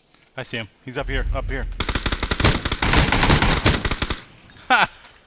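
A rifle fires loud rapid bursts of shots.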